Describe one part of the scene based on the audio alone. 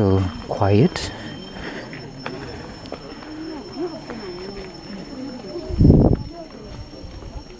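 A crowd of people talks and murmurs nearby outdoors.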